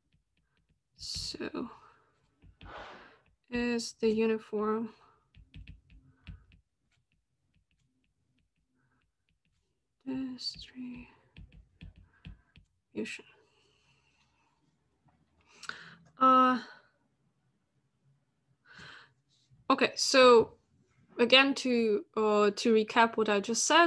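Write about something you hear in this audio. A woman speaks calmly over an online call, pausing now and then.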